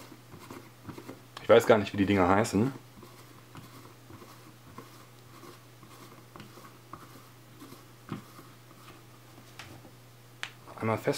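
Plastic caps softly click and scrape as hands handle them.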